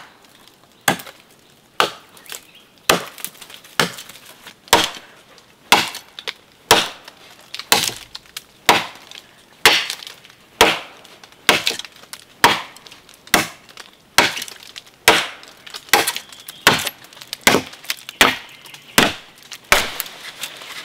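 A blade chops into a tree trunk with steady, regular blows.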